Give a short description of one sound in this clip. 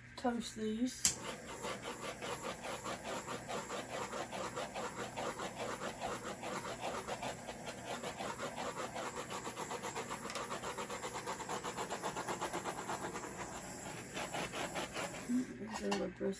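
A small spray gun sputters and hisses in rapid bursts.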